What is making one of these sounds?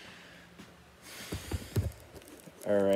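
Handling noises rustle and bump close by.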